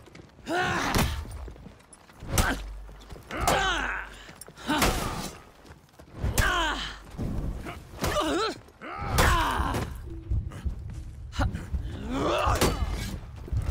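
Metal blades clash and ring in sharp blows.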